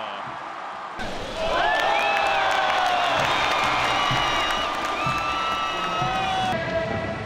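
A crowd cheers loudly in a large stadium.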